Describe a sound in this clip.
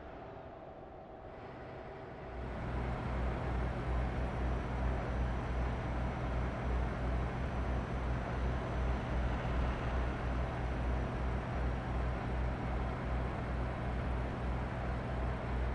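Tyres roar on a highway.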